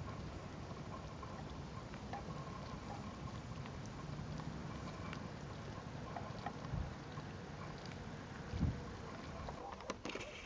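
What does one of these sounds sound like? Wind blows outdoors across open water.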